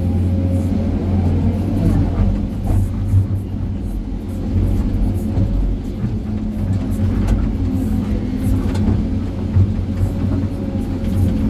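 Rocks and rubble scrape and clatter in a digger bucket.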